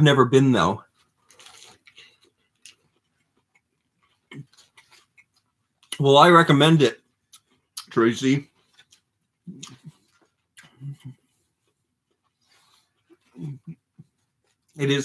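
A man chews and bites into crunchy food.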